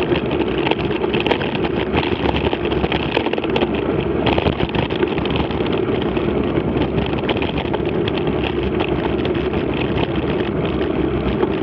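Wind rushes loudly past, outdoors.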